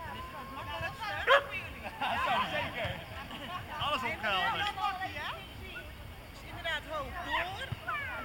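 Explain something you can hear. Several adults chat nearby outdoors.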